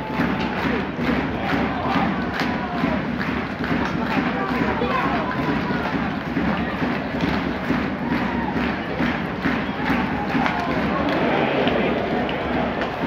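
A large crowd claps in a steady rhythm.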